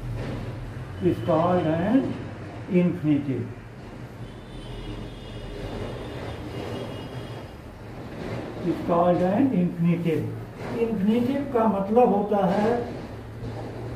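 An elderly man speaks calmly, as if lecturing.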